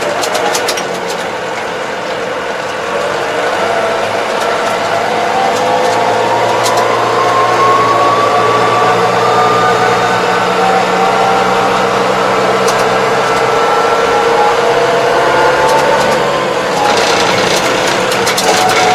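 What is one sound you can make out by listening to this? A tractor engine hums steadily inside a cab, its pitch rising and falling with speed.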